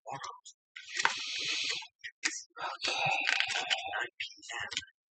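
A deck of cards is shuffled by hand.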